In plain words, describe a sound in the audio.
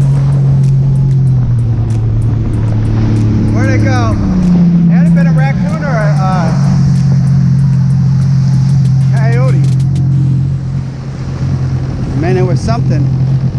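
Water splashes and rushes past a boat's hull.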